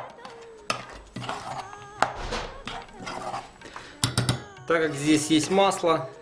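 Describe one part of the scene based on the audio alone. A spoon scrapes and clinks against an enamel bowl while stirring a thick paste.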